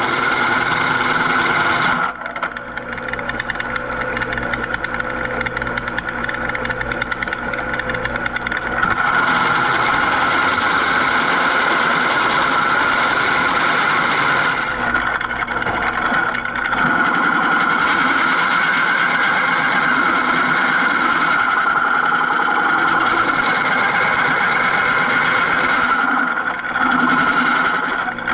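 A metal-cutting tool grinds loudly and steadily against steel.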